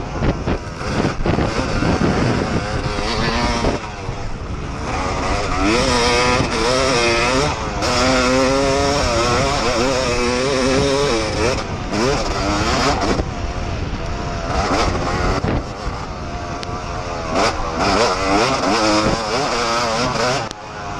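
Dirt and gravel clatter under the tyres.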